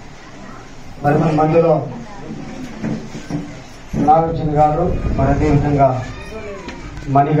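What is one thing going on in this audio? A man speaks with animation through a microphone and loudspeaker in an echoing room.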